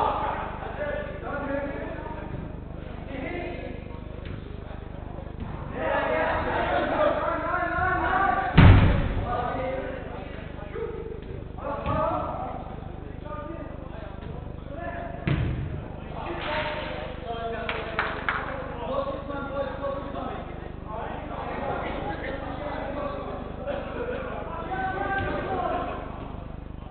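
Men shout and call out to each other across a large echoing indoor hall.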